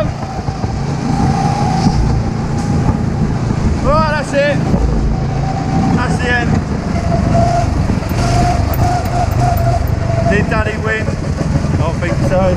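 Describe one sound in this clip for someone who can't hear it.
A small kart engine drones steadily up close.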